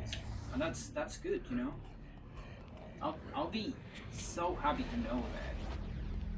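A young woman speaks casually into a microphone, close by.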